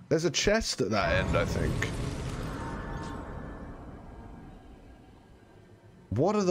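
A soft shimmering chime swells and slowly fades.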